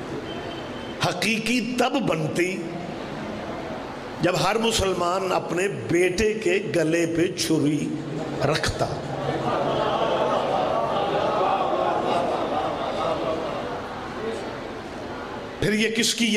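A middle-aged man speaks forcefully into a microphone, with pauses, heard through loudspeakers.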